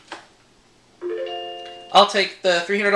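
A short electronic jingle plays.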